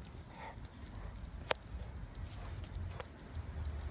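A large dog pants heavily.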